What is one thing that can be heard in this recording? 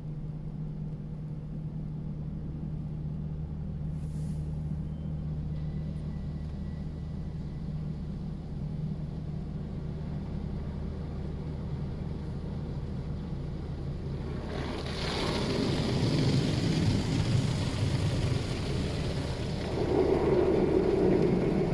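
Car wash machinery hums and whirs steadily.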